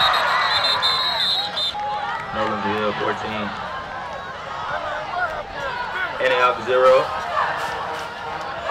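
Young men shout and cheer excitedly outdoors.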